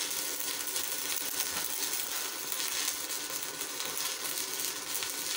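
An electric welding arc crackles and sizzles steadily.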